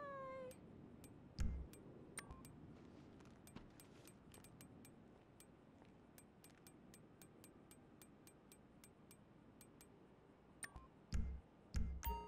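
Short soft clicks tick repeatedly as menu options change.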